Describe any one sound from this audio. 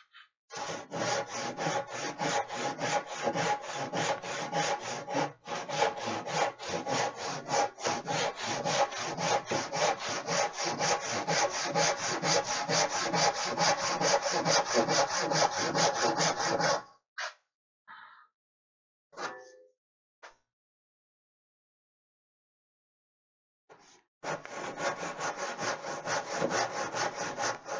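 A hand saw cuts wood with quick, rhythmic strokes.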